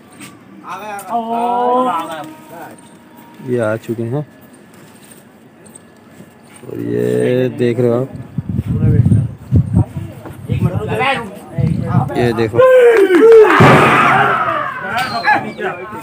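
A man's voice calls out through a loudspeaker, echoing across the rooftops.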